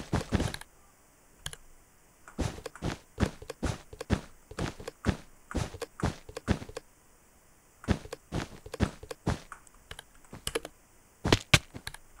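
Blocks are placed one after another with quick soft thuds.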